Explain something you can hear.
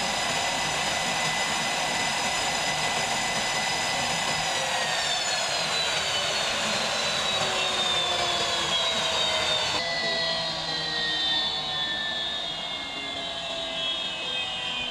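A jet engine whines loudly nearby, its pitch steady and then slowly falling.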